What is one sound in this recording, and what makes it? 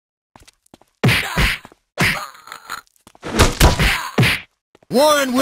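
Blows thud and smack in a brawl.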